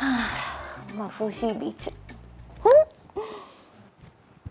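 A woman talks playfully close by.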